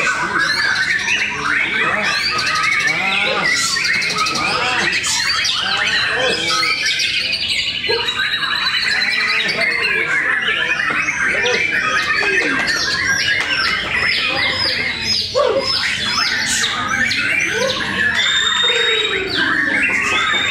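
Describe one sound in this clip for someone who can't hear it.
Many caged birds chirp and whistle all at once, loud and close.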